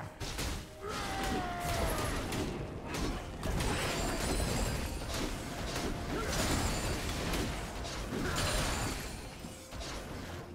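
Game characters strike each other with sharp hits.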